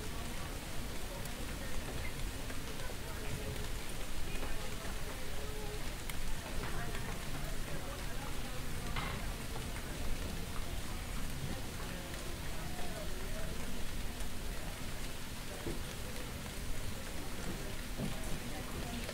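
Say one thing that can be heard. Rain patters on a wet street.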